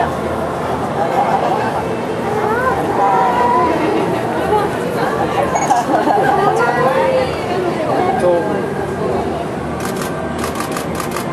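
A crowd of children and adults chatters and exclaims excitedly nearby.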